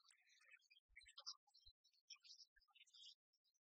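Game pieces click onto a wooden table.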